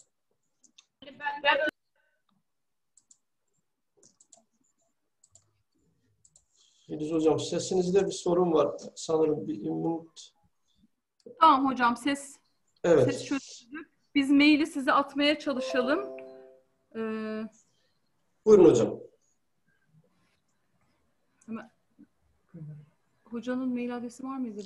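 A middle-aged woman speaks calmly and close, as if through a laptop microphone on an online call.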